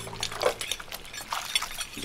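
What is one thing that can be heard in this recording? Water bubbles and splashes in a sink.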